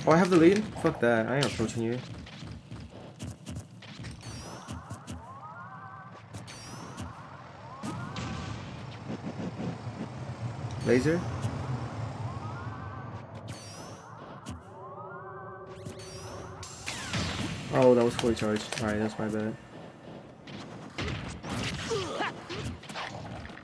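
Video game hits and whooshes ring out in quick bursts.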